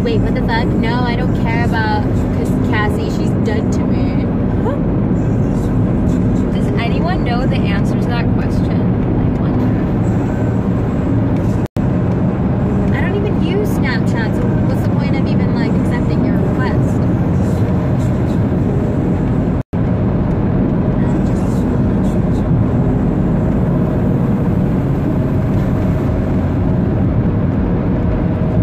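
A car engine and tyres rumble steadily on the road.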